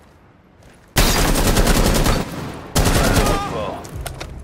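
A rifle fires a rapid burst of loud gunshots.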